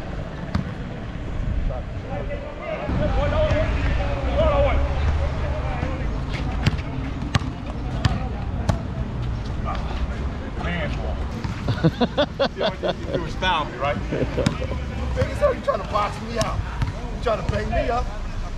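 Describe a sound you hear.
A basketball bounces on hard concrete.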